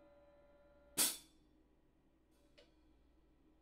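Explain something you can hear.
A hand knocks sharply against a hi-hat stand.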